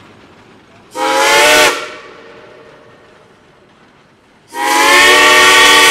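A steam whistle blows loudly in two long blasts.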